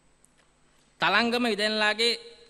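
A man speaks briefly through a microphone in a large hall.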